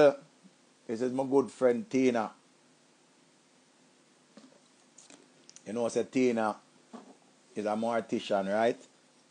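A middle-aged man talks calmly and close into a microphone, in short bursts with pauses.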